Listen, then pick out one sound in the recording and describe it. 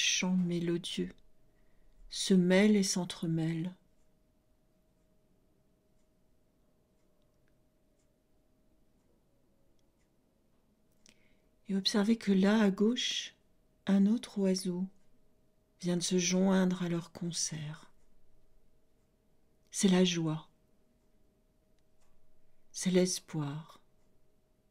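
A middle-aged woman speaks slowly and calmly into a close microphone, with long pauses.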